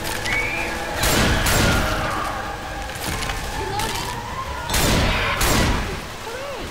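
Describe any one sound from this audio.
A shotgun fires loud blasts several times.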